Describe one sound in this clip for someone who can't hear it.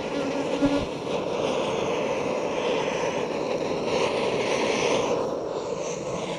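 A gas torch roars steadily up close.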